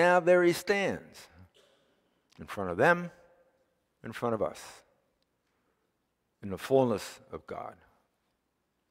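An elderly man speaks calmly through a microphone, in phrases with long pauses.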